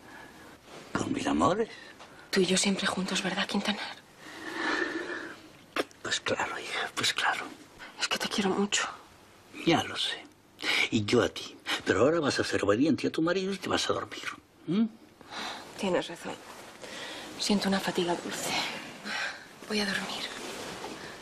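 A man speaks softly and warmly, close by.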